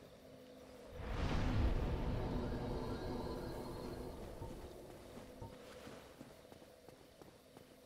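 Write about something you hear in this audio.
A loud deep whoosh swells and slowly fades.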